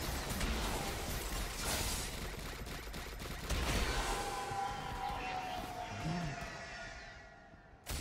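Fantasy battle sound effects clash and whoosh.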